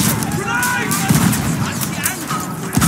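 An explosion bursts with a sharp blast.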